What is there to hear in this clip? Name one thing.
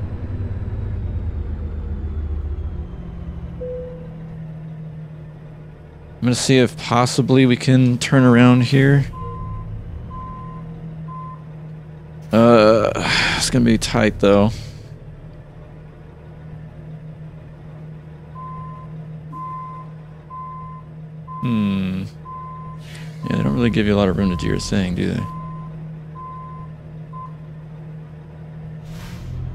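A truck's diesel engine rumbles steadily at idle.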